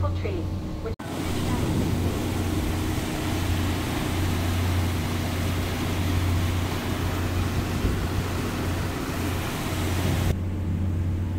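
Water churns and rushes in a boat's wake.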